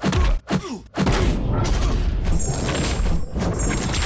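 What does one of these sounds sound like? A charged energy blast roars steadily.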